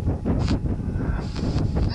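A lit fuse fizzes and sputters close by.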